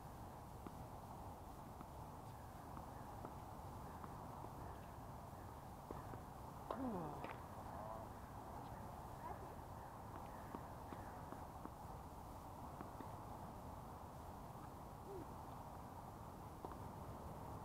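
Tennis balls are struck with rackets, with sharp pops.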